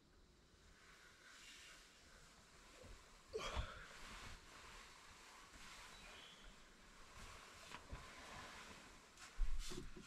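Bedding rustles as a person gets out of bed.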